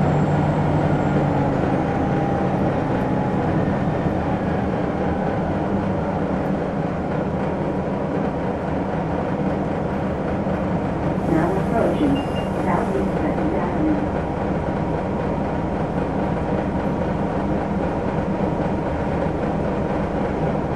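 A bus engine idles with a low, steady rumble nearby.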